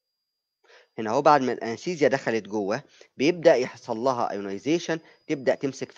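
A man speaks calmly into a microphone, as if explaining.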